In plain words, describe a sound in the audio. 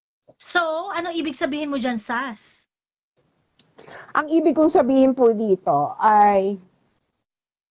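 A woman talks with animation over an online call.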